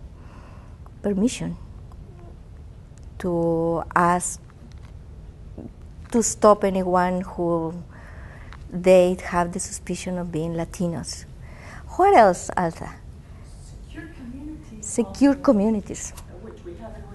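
A woman speaks with animation, heard from a distance in a large room.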